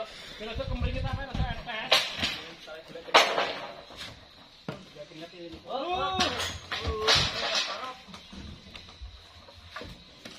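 A heavy log scrapes and thuds on wooden planks.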